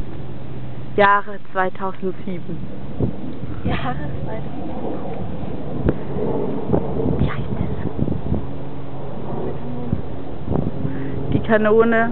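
A young woman speaks close by, with animation.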